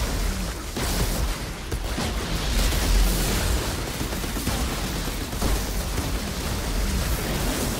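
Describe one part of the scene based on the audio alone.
Weapons fire in rapid bursts.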